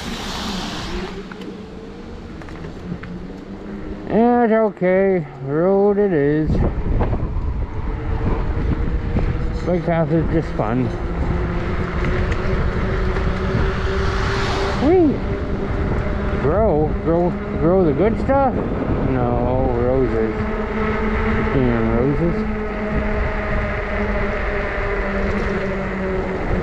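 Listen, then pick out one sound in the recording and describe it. Tyres hiss on a wet, icy road.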